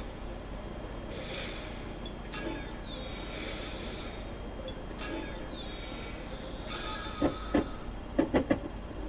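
Short chimes and swooshes from a video game menu play.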